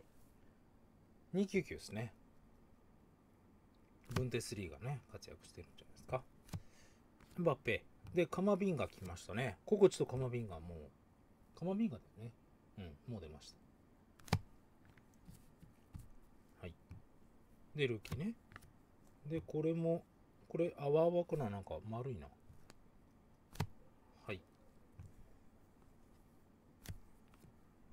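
Stiff chrome trading cards click and slide as they are flipped through.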